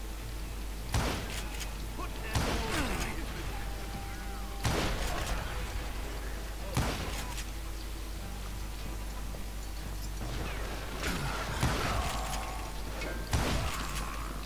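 Gunshots crack sharply, one at a time.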